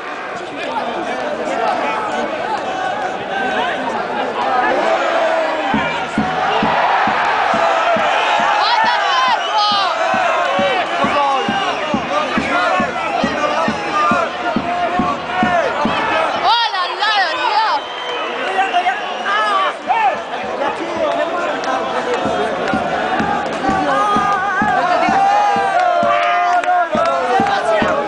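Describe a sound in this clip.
A large stadium crowd sings and chants loudly all around.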